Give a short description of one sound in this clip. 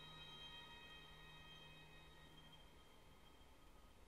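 Violins hold a soft, fading note.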